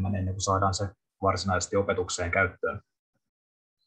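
A man speaks calmly through a headset microphone over an online call.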